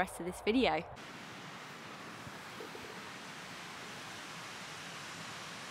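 A stream flows and rushes steadily.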